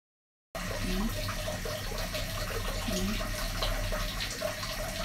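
Hands rub and scrub wet hair.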